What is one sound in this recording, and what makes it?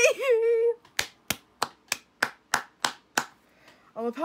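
A young woman claps her hands quickly several times.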